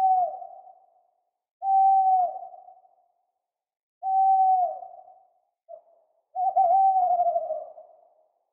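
An owl hoots in long, low calls with pauses between them.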